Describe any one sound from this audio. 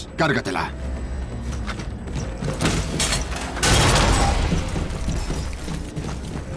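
Heavy boots thud on a metal floor.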